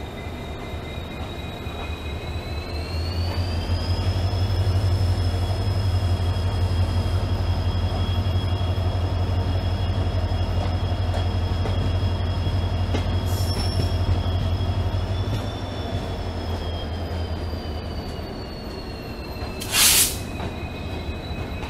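Train wheels clatter and rumble over the rails.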